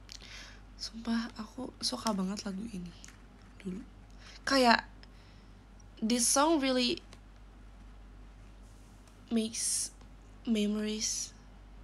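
A young woman speaks softly and casually, close to a microphone.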